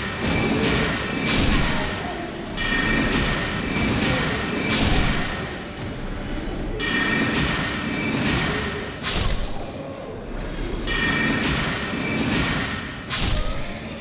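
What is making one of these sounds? Swords clash and ring in a fight.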